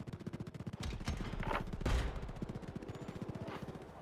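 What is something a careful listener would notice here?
Heavy metal doors grind and open.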